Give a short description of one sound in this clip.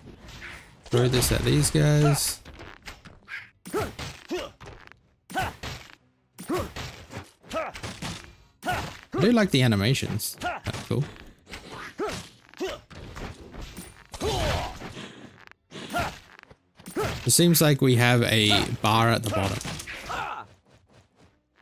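Rapid magical shots pop and crackle as small creatures are hit.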